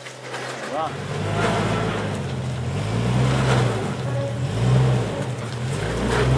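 A second engine revs up and down as a vehicle climbs over rocks.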